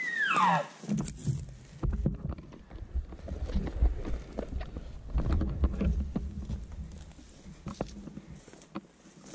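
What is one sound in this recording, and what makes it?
Clothing rubs and rustles close to the microphone.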